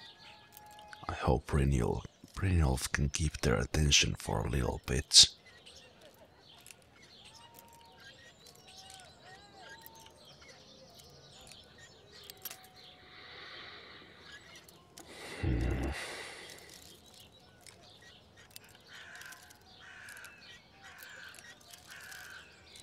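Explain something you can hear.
A metal lock pick scrapes and clicks inside a lock.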